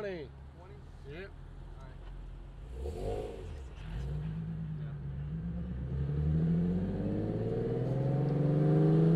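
Car engines rumble low while driving on a road.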